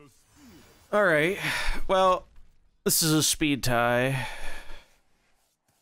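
A loud magical whoosh sweeps past with ringing chimes.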